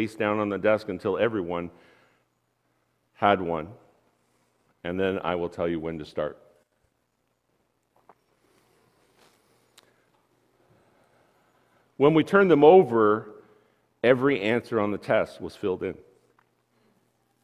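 A middle-aged man speaks with animation through a microphone in a large room, pausing between phrases.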